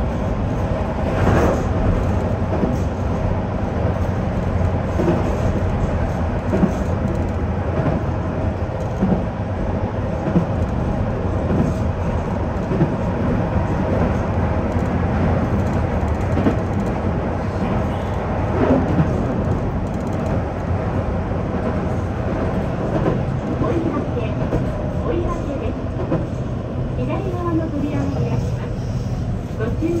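A train rumbles steadily along the rails from inside the cab.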